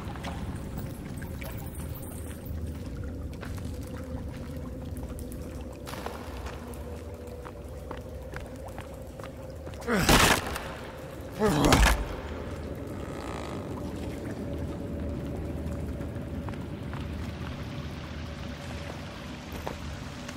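Footsteps crunch and scuff slowly over rocky ground.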